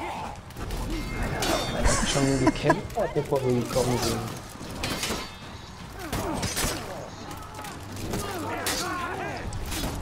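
Swords clash and clang with sharp metallic strikes.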